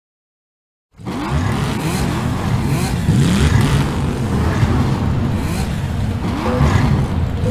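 Racing car engines roar and whine as they speed up.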